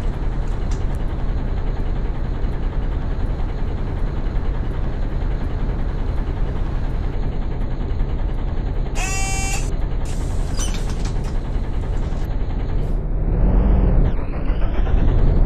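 A diesel bus engine idles at a stop.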